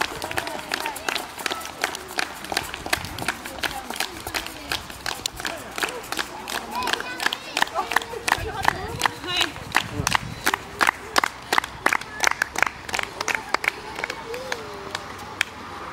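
A crowd of men and women cheers and calls out.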